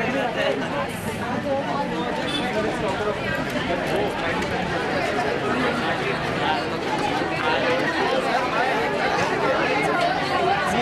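A large crowd of young men and women chatters and murmurs outdoors.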